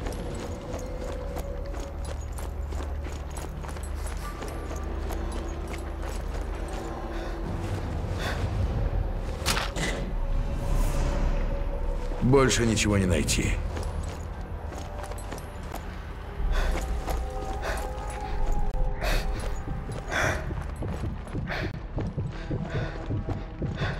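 Boots crunch on gravel.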